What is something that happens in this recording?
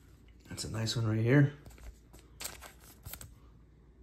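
A card slides with a soft scrape into a plastic sleeve.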